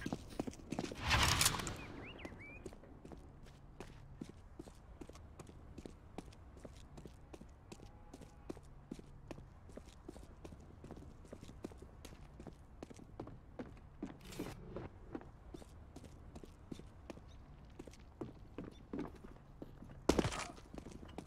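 Quick footsteps tap steadily on stone floors.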